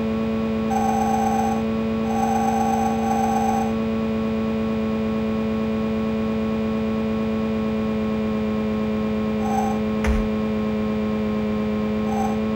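A video game car engine drones steadily at high speed.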